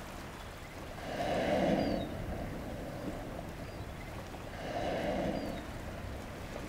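A whale blows a loud, breathy spout at the water's surface.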